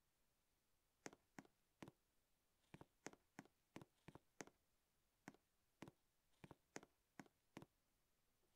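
A game character's footsteps tap lightly in quick bursts.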